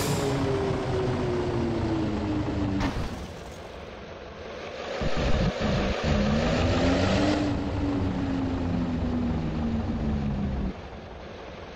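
A bus engine hums and rumbles, changing pitch as it drives.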